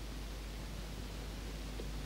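Pages of a small book rustle as they are turned.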